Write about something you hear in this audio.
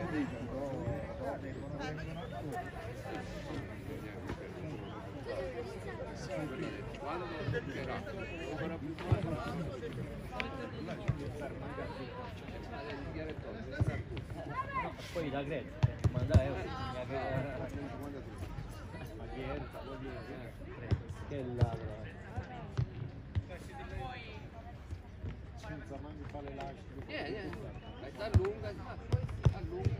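Young boys shout and call out to each other across an open field.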